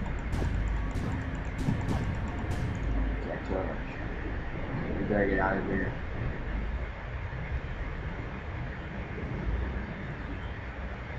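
Water rumbles and swirls steadily underwater.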